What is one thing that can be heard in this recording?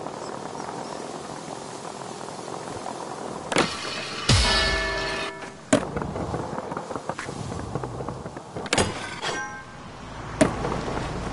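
Skateboard wheels roll on smooth pavement.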